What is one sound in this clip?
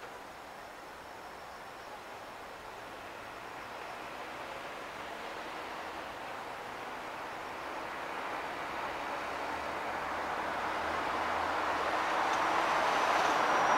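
City traffic hums steadily on a road below, growing louder as cars approach.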